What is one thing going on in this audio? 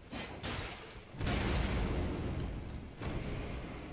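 A gust of wind whooshes around in a swirl.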